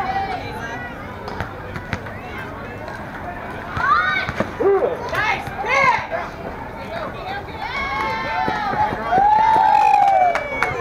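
Young women shout and cheer outdoors.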